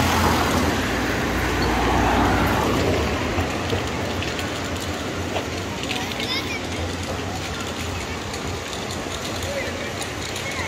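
Distant city traffic hums steadily outdoors.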